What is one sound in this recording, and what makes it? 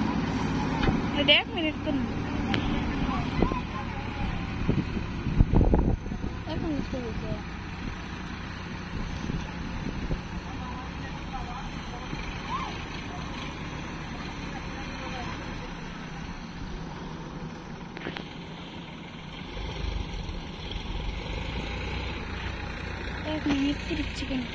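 A backhoe's diesel engine rumbles steadily nearby.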